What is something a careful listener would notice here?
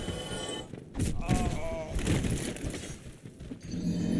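A game character grunts and cries out while falling.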